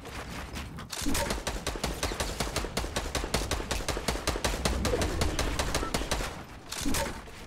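Building pieces snap into place in quick, rapid knocks.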